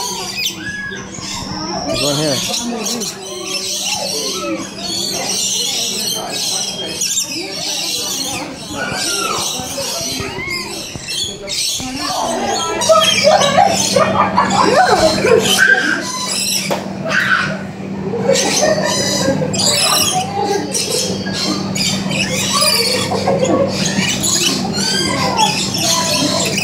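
Many birds chirp and squawk all around, in a space with some echo.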